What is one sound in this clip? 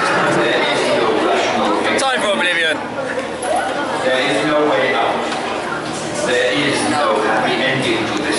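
A crowd of people chatters nearby in a busy, echoing hall.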